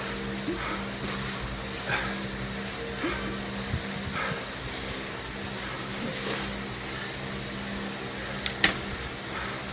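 A bike trainer whirs steadily with a low hum.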